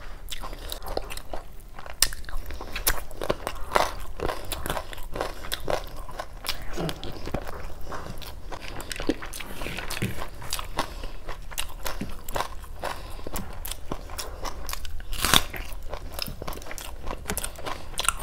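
Fingers squish and mix soft rice close by.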